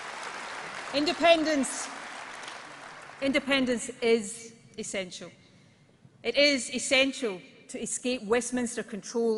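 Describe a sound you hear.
A woman speaks calmly and firmly through a microphone into a large hall.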